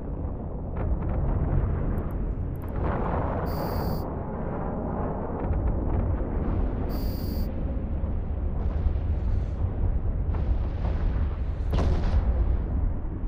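A spaceship's engine hums low and steady.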